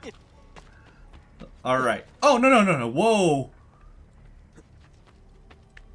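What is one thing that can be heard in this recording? Footsteps patter lightly on stone.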